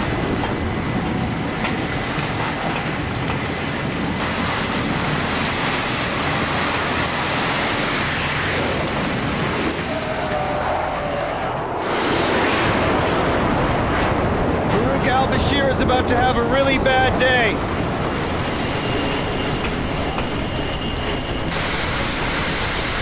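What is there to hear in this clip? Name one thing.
Rough sea waves crash and wash.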